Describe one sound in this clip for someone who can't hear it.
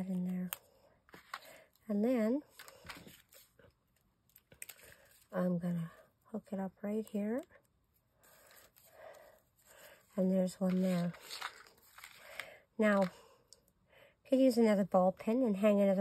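Paper pieces rustle and tap softly against a tabletop.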